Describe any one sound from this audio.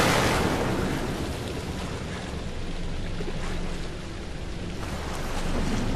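A man wades through water, splashing.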